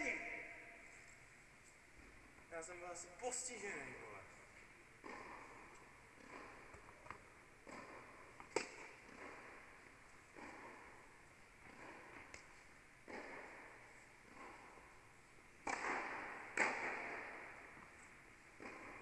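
Tennis balls bounce on the court.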